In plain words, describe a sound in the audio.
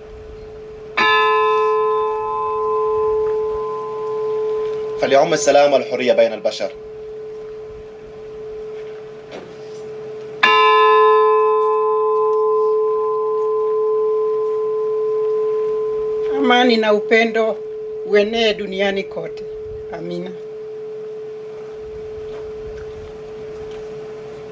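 A large bell rings out loudly and slowly fades.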